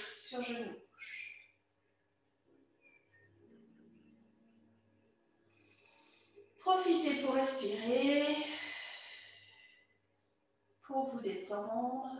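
A woman speaks calmly, giving instructions.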